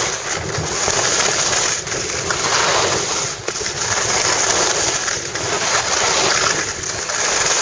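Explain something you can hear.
Skis scrape and hiss steadily over packed snow.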